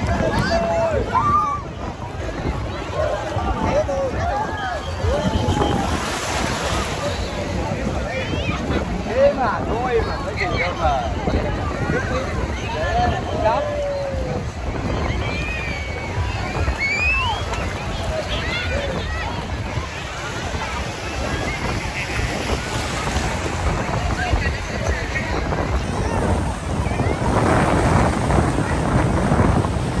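Small waves wash and splash around the bathers, outdoors in wind.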